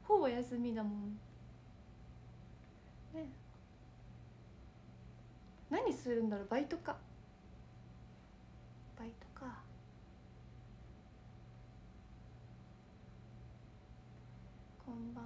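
A young woman speaks softly and casually close to a microphone, in short bursts with pauses.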